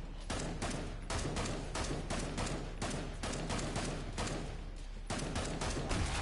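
A gun fires repeated shots in quick bursts.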